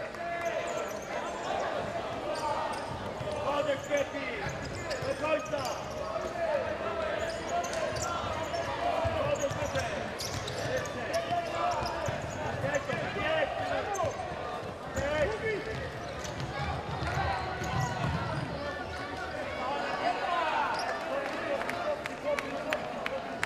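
A crowd in an indoor arena chants and cheers.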